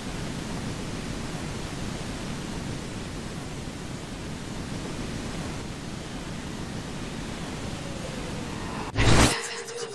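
A fire roars steadily.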